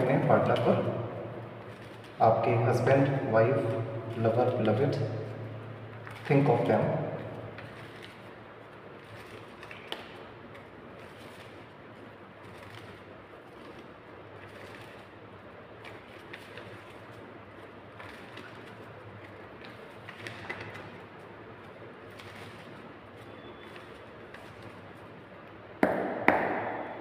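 Playing cards are shuffled by hand, with soft riffling and flicking.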